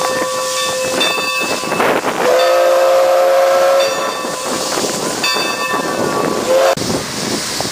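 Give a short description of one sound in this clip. Steam hisses loudly from a locomotive.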